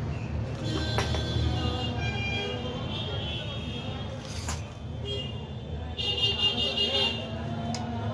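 Metal rods clink and scrape against a plastic power tool.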